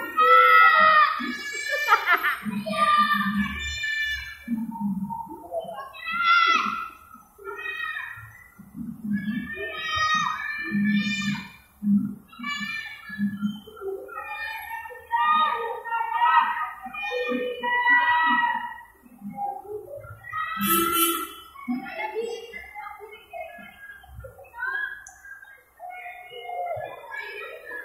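Young children chatter and shout excitedly nearby.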